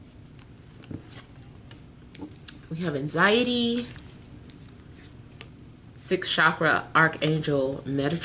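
Playing cards riffle and slap as they are shuffled.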